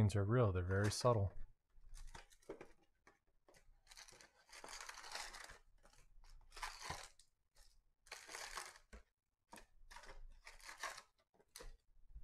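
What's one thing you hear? Foil card packs crinkle and rustle as they are pulled from a cardboard box.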